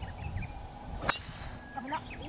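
A driver strikes a golf ball with a sharp crack.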